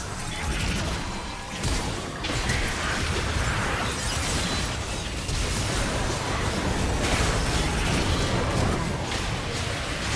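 Magical blasts, whooshes and clashing hits sound in a fast game battle.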